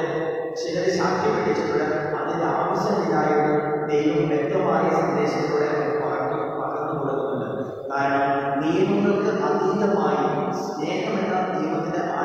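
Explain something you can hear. A man sings steadily through a microphone in an echoing hall.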